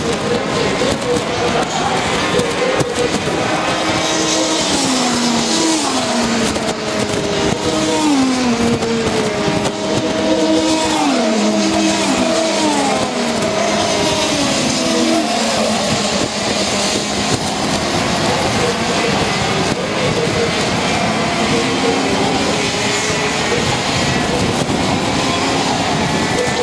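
Kart engines whine loudly, rising and falling in pitch as karts race past.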